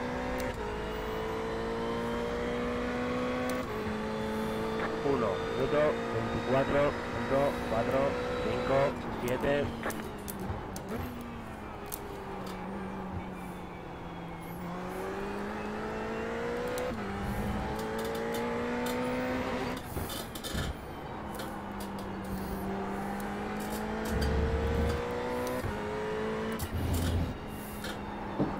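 Tyres squeal through corners.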